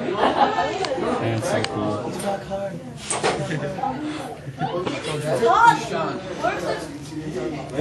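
A teenage boy talks with animation close by.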